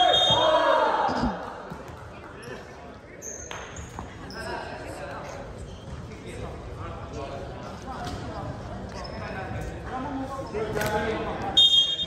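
Young men and women chatter and call out in a large echoing gym.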